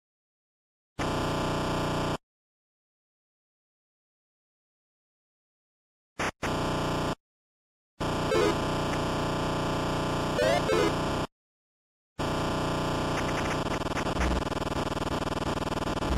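Chiptune video game music plays in short bursts.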